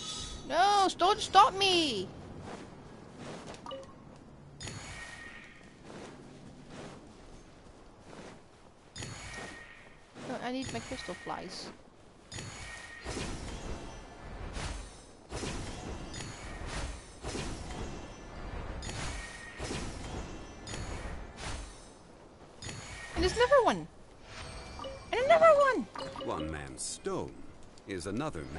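Bright magical chimes ring out in short bursts.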